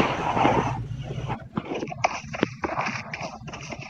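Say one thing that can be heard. Footsteps crunch through dry grass.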